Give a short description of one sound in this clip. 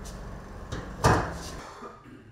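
A car bonnet slams shut with a loud thud.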